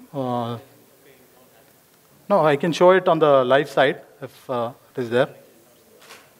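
A man speaks through a microphone in a large hall, presenting calmly.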